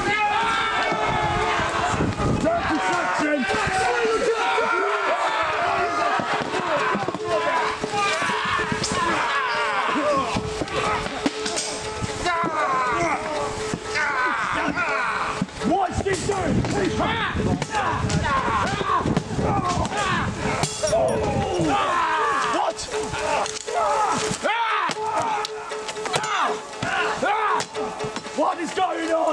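A crowd of men shout and yell close by.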